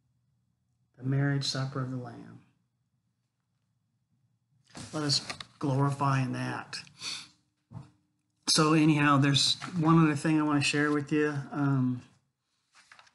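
An older man talks calmly and close by, as if into a computer microphone.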